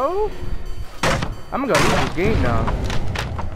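A wooden pallet cracks and splinters as it is smashed.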